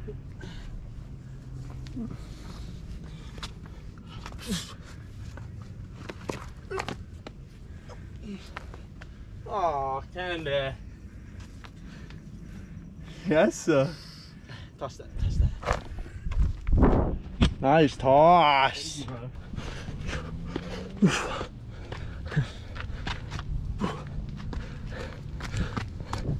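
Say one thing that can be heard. Shoes scrape and tap on rock as someone climbs.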